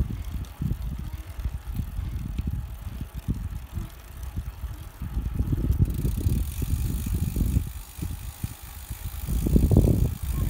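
Wind buffets the microphone outdoors in low, gusty rumbles.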